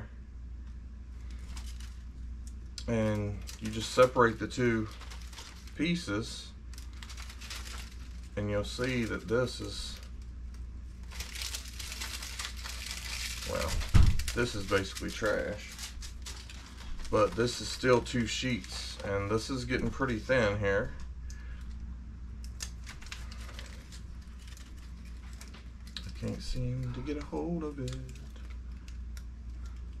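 Plastic sheets crinkle and rustle in a man's hands.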